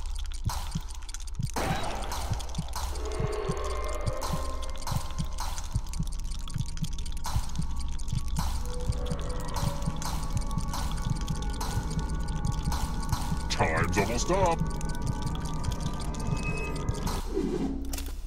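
Dice clatter and roll repeatedly.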